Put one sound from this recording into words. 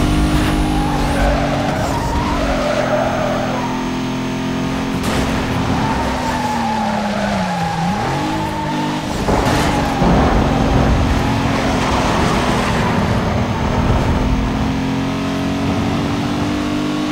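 Tyres hiss over a slick road surface.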